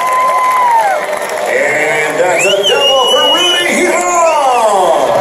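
A crowd of spectators cheers loudly outdoors.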